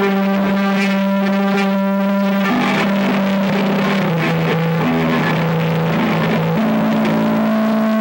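A band plays loud distorted electric guitars live on stage.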